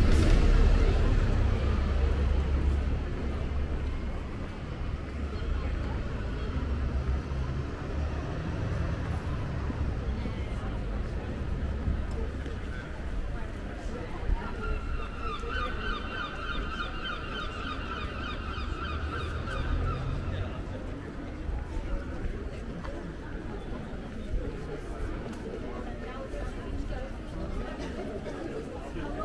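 Voices of passers-by murmur in the distance.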